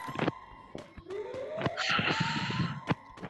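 A rising whooshing tone sounds.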